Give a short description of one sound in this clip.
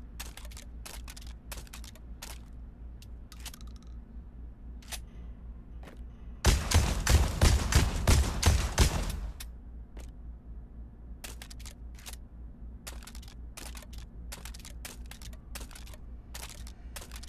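A shotgun clicks and clacks as it is handled.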